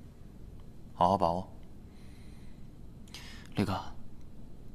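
A second young man speaks quietly in reply.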